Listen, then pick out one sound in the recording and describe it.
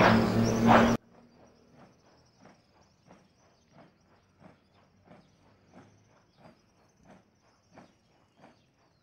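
Many footsteps march in step on pavement outdoors.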